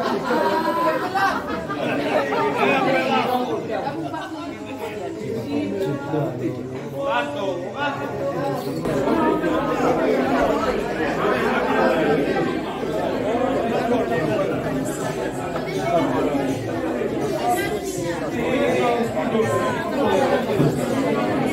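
A crowd of men and women chatter loudly indoors.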